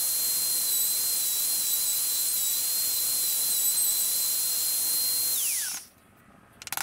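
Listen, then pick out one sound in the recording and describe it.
A wood router whines loudly as it cuts.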